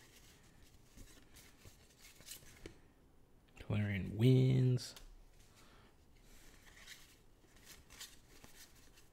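Playing cards slide and rustle softly in a hand.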